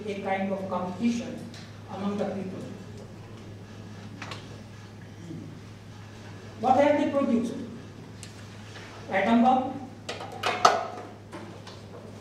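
An elderly man speaks emphatically into a microphone, with pauses between phrases.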